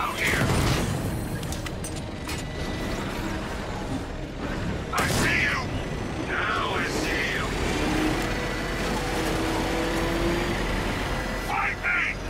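A heavy vehicle's engine roars steadily.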